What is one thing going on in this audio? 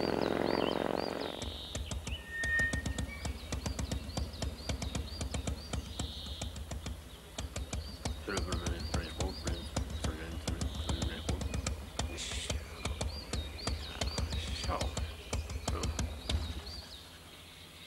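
A motorcycle engine idles with a steady, rapid throb, then cuts off.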